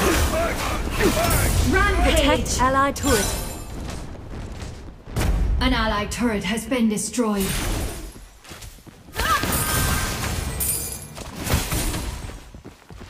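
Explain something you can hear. Magic blasts and impacts crash during a fight.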